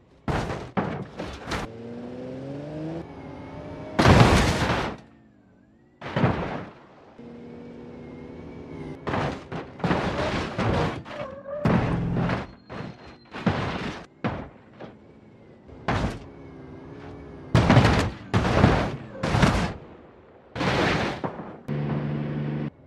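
A car crashes with a loud metallic bang.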